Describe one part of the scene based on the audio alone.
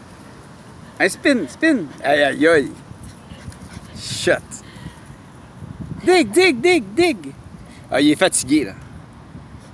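A dog barks in short bursts.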